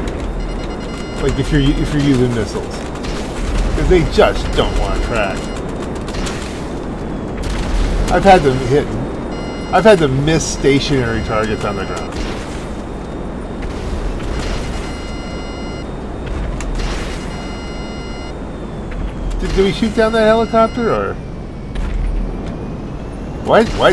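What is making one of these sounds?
Wind rushes steadily past a gliding aircraft in flight.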